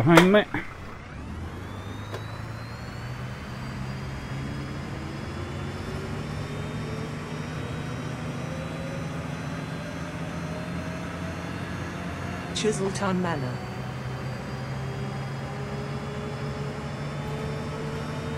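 A city bus diesel engine pulls away and picks up speed.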